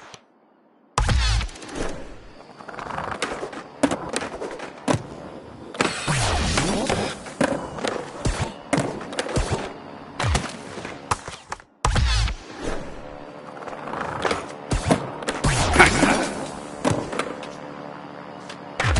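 Skateboard wheels roll and clatter over concrete.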